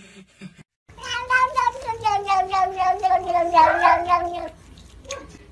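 A cat lets out a long, loud, wavering meow close by.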